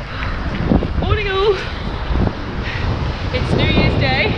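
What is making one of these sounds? A young woman talks excitedly, close by.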